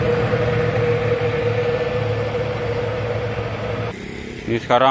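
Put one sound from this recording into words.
A heavy truck engine rumbles on the road.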